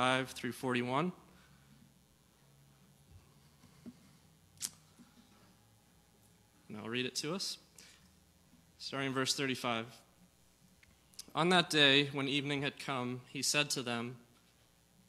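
A young man speaks calmly through a microphone, in pauses.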